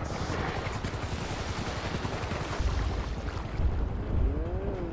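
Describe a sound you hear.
Water splashes as a swimmer paddles at the surface.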